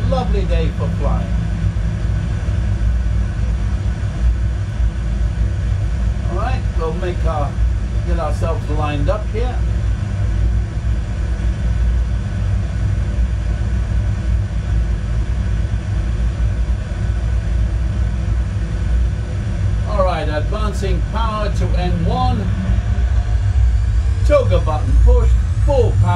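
An elderly man speaks calmly in short phrases.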